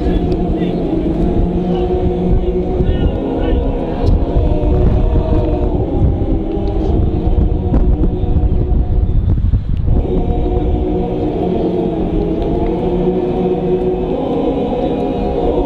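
A choir of older men sings together outdoors.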